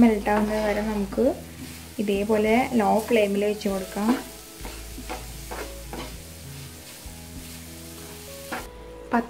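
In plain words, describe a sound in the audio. A wooden spatula scrapes and stirs fruit and sugar in a pan.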